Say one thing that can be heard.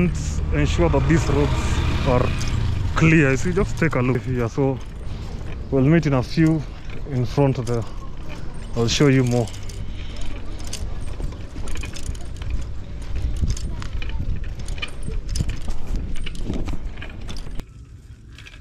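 Bicycle tyres rumble over a rough dirt road.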